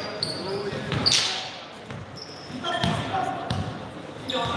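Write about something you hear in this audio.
A basketball thumps on the floor.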